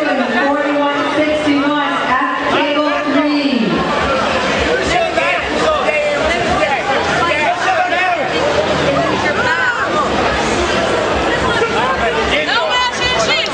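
A crowd of people shouts and cheers in a large echoing hall.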